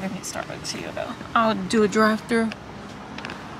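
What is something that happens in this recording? A young woman speaks close by in a casual, animated voice.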